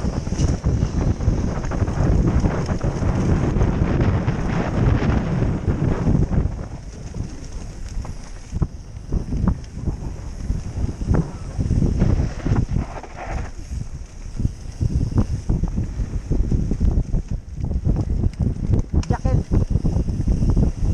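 Wind rushes loudly past a helmet.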